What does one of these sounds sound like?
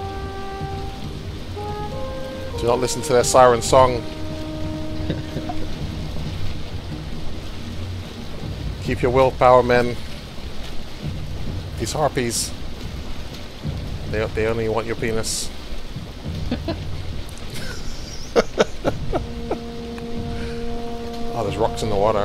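Waves wash and splash against a sailing boat's hull.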